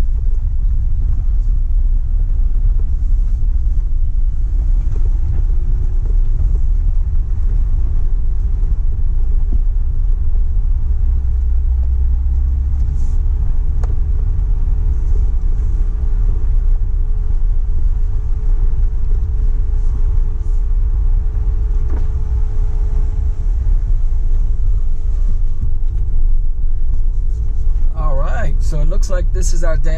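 Tyres crunch over gravel and rocks.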